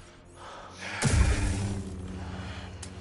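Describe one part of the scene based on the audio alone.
A lightsaber ignites with a sharp crackle.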